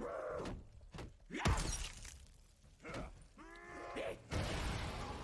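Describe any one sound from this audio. A monster snarls and shrieks close by.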